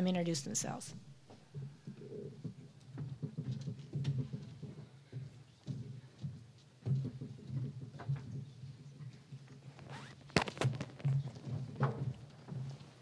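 Audience members chatter quietly in a large room.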